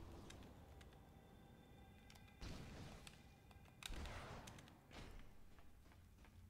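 Small plastic pieces clatter and click in bursts.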